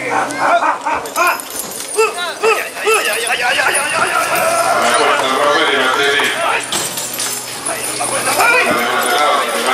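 A crowd of people chatters and calls out outdoors.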